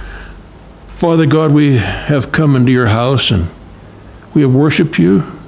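An elderly man sings loudly into a microphone.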